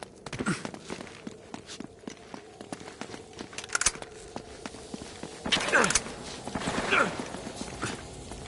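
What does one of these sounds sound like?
Footsteps patter on a stone floor.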